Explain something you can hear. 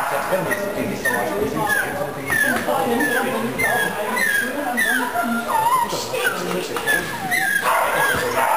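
A dog barks sharply in a large echoing hall.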